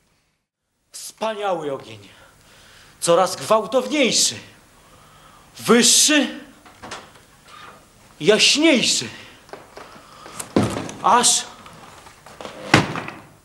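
A young man shouts loudly on a stage, his voice echoing.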